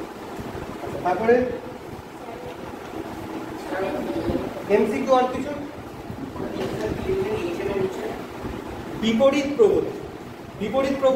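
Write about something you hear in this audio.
A young man speaks calmly and explains, close by.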